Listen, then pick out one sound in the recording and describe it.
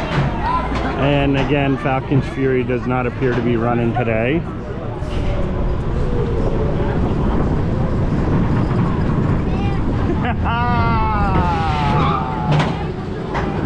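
Men and women riders chatter excitedly close by.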